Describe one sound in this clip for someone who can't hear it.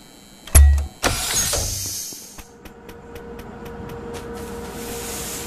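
A gas spray hisses loudly in a game.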